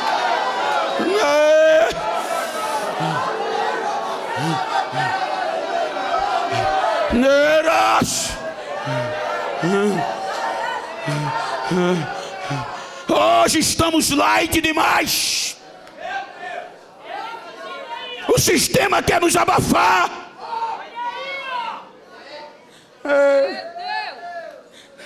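A man preaches loudly and with passion through a microphone in a large echoing hall.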